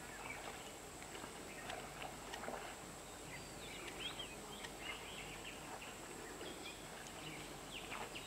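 Water splashes softly around a wading rhinoceros.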